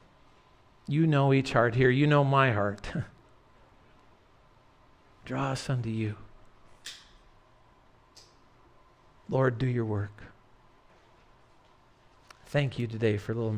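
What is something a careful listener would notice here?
A middle-aged man speaks earnestly through a microphone, pausing between phrases.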